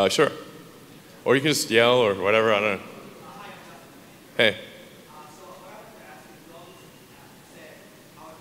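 A man speaks casually into a microphone, heard over loudspeakers in a large echoing hall.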